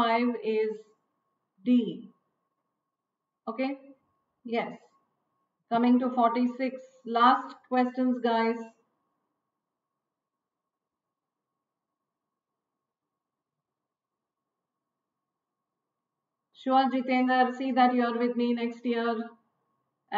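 A woman speaks calmly and clearly into a close microphone, with pauses.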